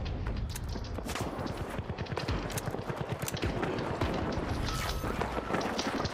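A rifle magazine clicks as it is reloaded.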